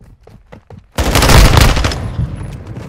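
A loud gunshot blast booms and rings out.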